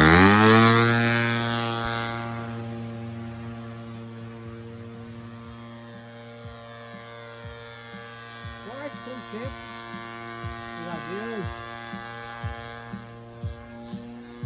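A model airplane engine buzzes loudly as the plane takes off and flies overhead.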